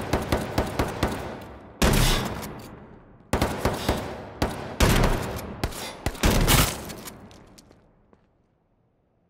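Loud gunshots fire in quick bursts, each echoing away.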